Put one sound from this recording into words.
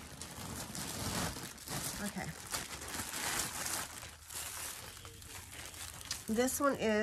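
Plastic and fabric rustle as items are handled.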